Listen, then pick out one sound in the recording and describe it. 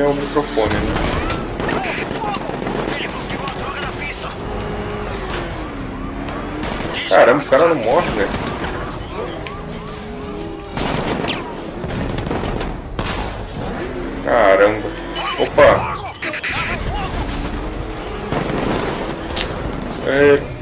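Cannon fire and impacts bang loudly.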